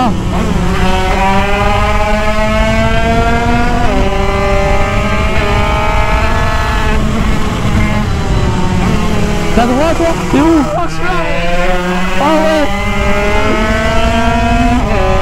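A motorcycle engine revs up and down, rising and falling in pitch as gears change.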